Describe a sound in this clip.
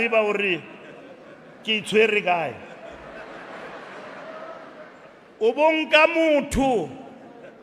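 A middle-aged man speaks forcefully into a microphone, his voice echoing in a hall.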